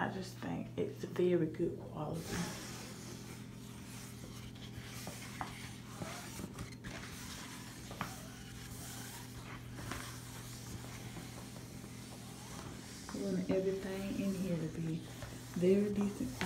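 A hand brushes softly against a fabric curtain.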